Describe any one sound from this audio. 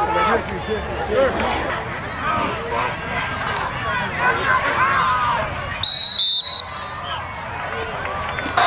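A crowd cheers in a stadium outdoors.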